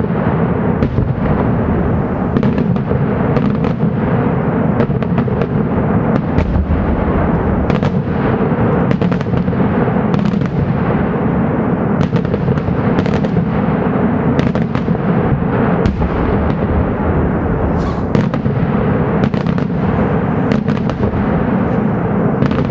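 Loud booming rumbles on steadily outdoors.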